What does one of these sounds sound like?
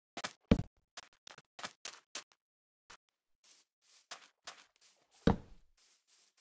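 A block is placed with a short thud.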